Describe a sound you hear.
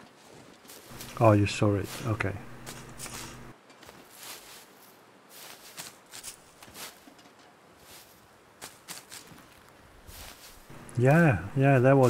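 Dry reeds rustle as they are pulled.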